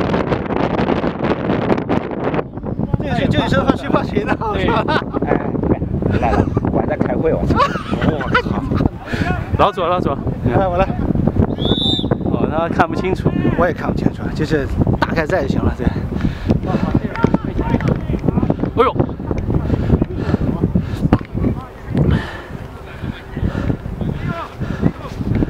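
Wind blows over the microphone outdoors.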